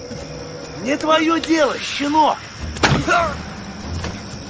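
A man speaks angrily and harshly close by.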